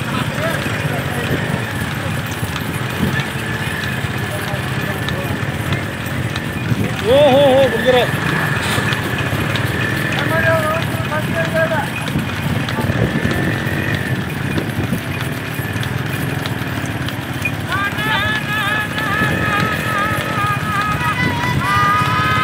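Hooves clop on a paved road.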